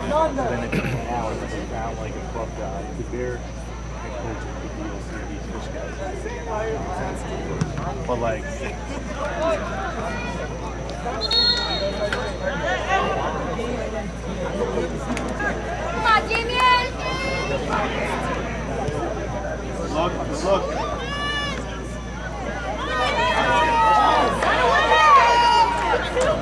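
Young men shout and call out across an open field outdoors.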